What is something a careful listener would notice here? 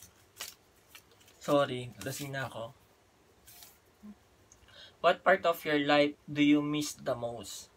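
Paper rustles and crinkles in hands.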